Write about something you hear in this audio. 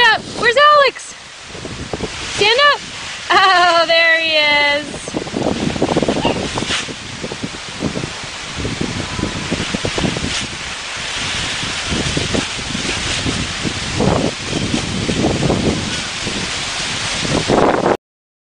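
Dry leaves rustle and crunch as a child plays in them.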